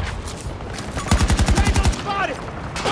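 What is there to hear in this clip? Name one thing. A rifle fires a rapid burst close by.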